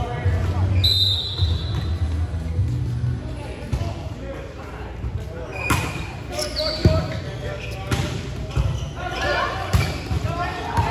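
Players call out to each other across the court.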